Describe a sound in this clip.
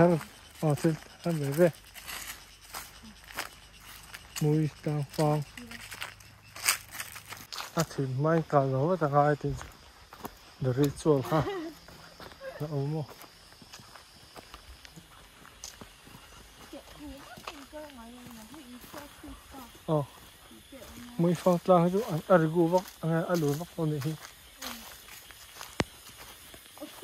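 Footsteps crunch on dry leaves and dirt.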